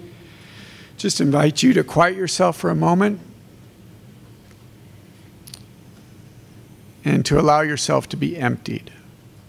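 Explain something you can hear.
A man speaks calmly through a microphone and loudspeakers in a large room.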